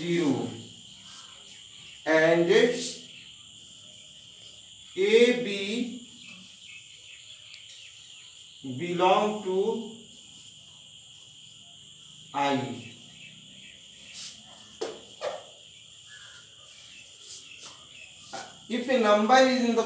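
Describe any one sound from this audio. A man speaks in short bursts, explaining calmly.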